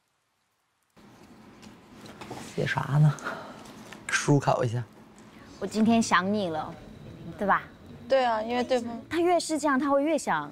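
Young women talk lively over an online call.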